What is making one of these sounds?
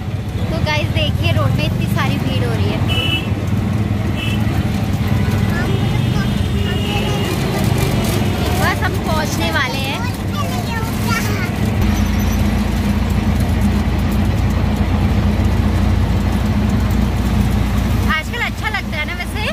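An auto-rickshaw engine rumbles steadily while riding.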